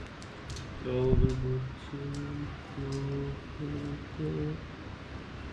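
A young man talks softly to a dog.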